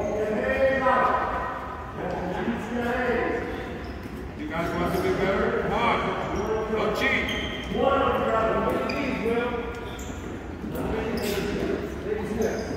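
Teenage boys talk and call out, echoing in a large hall.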